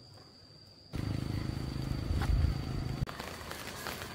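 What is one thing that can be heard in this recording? A woven plastic sack rustles and crinkles loudly close by.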